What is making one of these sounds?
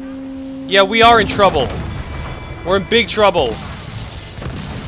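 Cannons fire in heavy booming blasts.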